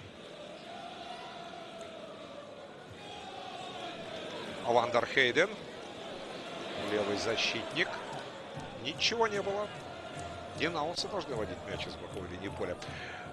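A large stadium crowd murmurs and chants steadily in the background.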